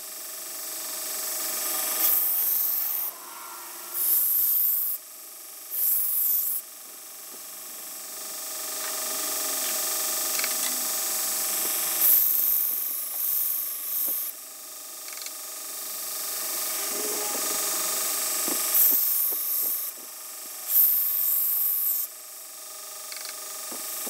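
A belt sander runs with a steady whirring hum.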